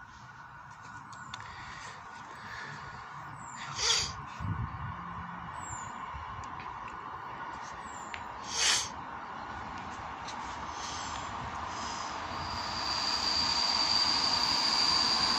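A train approaches along the tracks, its rumble slowly growing louder.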